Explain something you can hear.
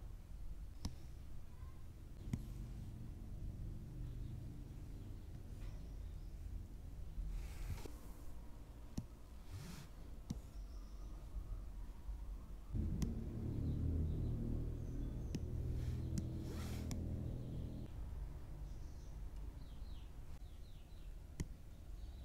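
A stylus taps lightly on a tablet's glass.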